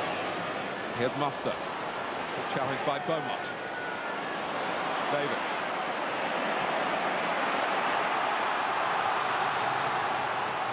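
A large crowd murmurs and roars, swelling louder toward the end.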